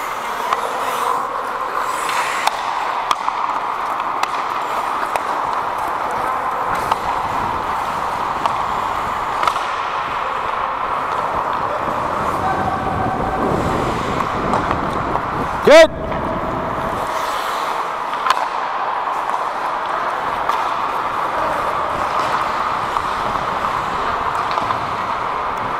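Hockey sticks clack against a puck now and then.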